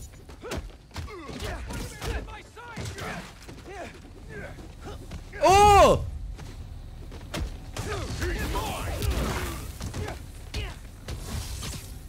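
Punches and kicks thud in a scuffle.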